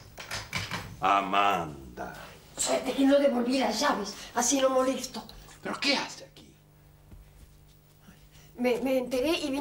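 A middle-aged woman speaks close by.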